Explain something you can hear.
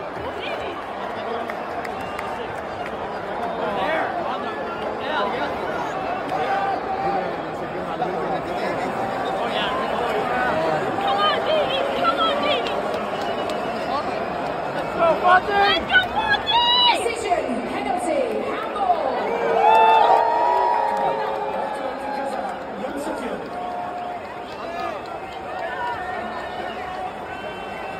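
A large stadium crowd cheers and chants loudly all around, echoing in the open stands.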